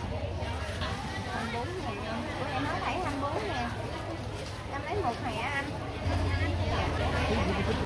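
A plastic bag rustles as vegetables are packed into it.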